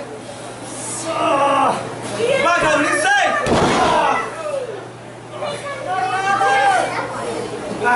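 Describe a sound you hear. A man shouts and groans with effort.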